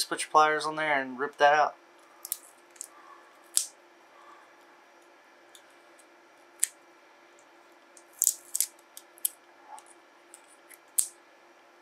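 Pliers snip and tug at metal strips with sharp little clicks.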